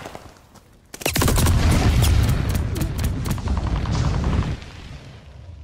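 A gun fires in rapid bursts, loud and close.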